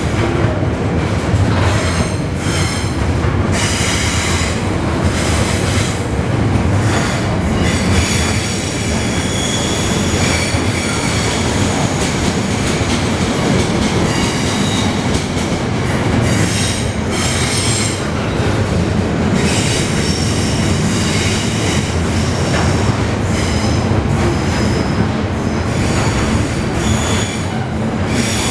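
Train wheels clatter and squeal rhythmically on the rails.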